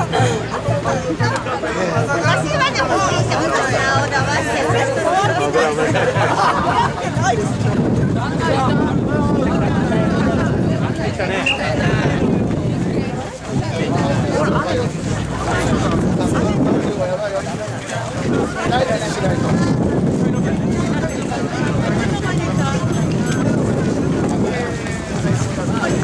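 A large crowd of men chants loudly and rhythmically close by, outdoors.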